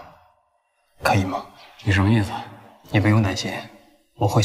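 A second young man answers in a reassuring tone.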